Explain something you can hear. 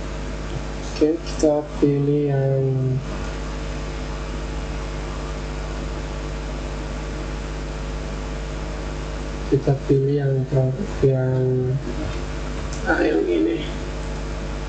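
A young man speaks calmly, close to a microphone.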